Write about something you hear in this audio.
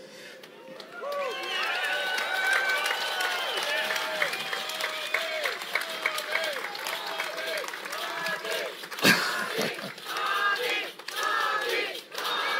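A large crowd cheers and chants loudly.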